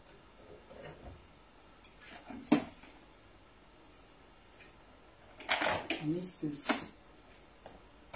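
A metal kettle is lifted and set down with clanks on a counter.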